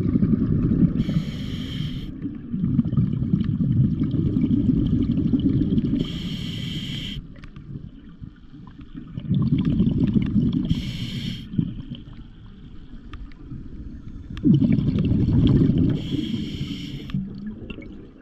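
A diver breathes in through a regulator with a sharp hiss, again and again.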